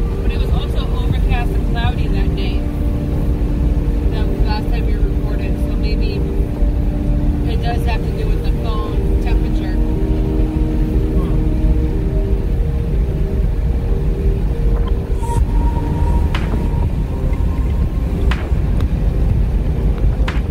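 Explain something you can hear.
A car drives along a road with a steady low rumble from inside the cabin.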